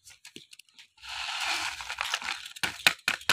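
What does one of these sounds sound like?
A paper seed packet rustles and crinkles close by.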